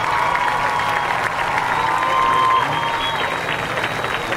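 A marching band holds a loud final chord outdoors, then cuts off.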